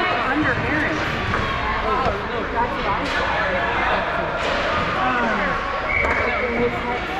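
Children shout and call out across a large echoing rink.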